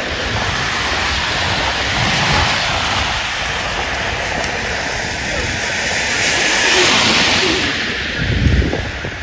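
Car tyres hiss past on a wet road.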